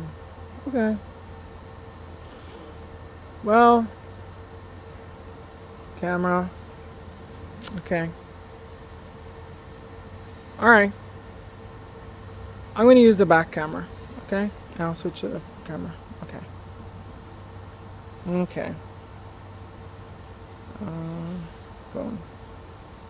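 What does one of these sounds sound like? A woman speaks calmly in short phrases, close to a microphone.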